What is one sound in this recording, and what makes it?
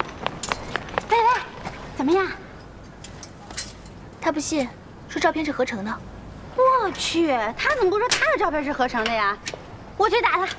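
A young woman speaks with concern.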